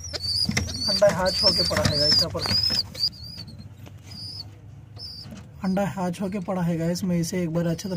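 A pigeon coos softly close by.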